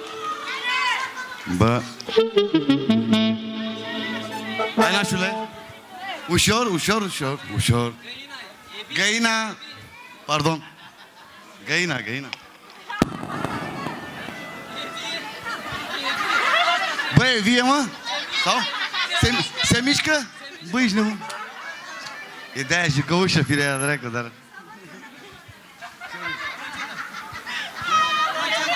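A crowd of guests chatters loudly in a large hall.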